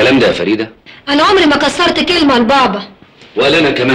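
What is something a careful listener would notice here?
A young woman speaks in a complaining tone, close by.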